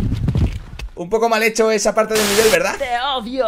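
A young man talks animatedly into a microphone.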